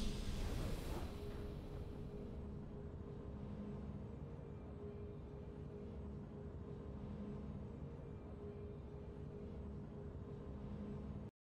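Soft, steady victory music plays in a video game.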